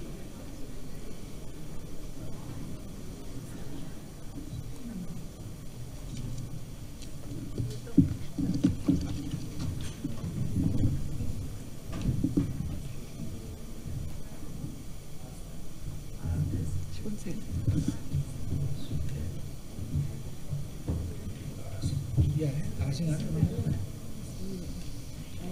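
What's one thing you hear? Several adults chat quietly nearby.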